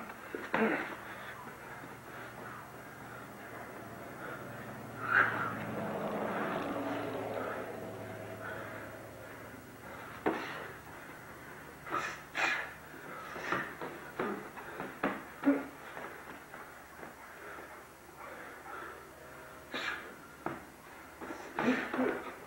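Sneakers scuff and squeak on the floor.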